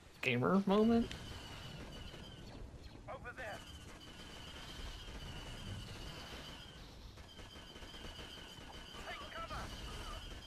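Laser blasters fire in short, sweeping bursts.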